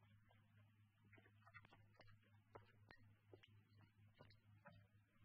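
Footsteps tap across a stone floor, echoing faintly.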